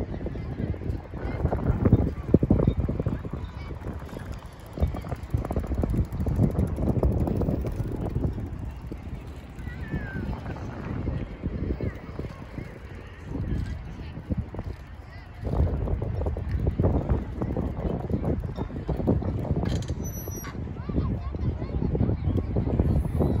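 A bicycle and its small trailer roll and rattle over concrete.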